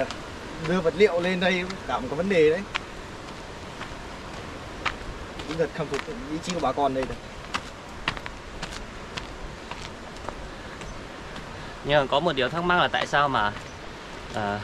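A walking stick taps on the ground.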